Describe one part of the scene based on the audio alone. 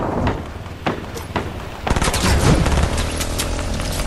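Leaves rustle as a figure crashes through a bush.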